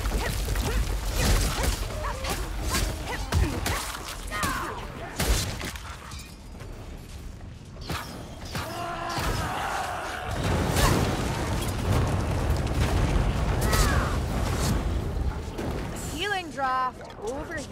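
A sword swishes through the air in quick slashes.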